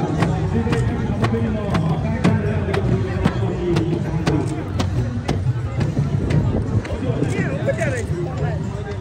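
Hand drums beat a steady rhythm.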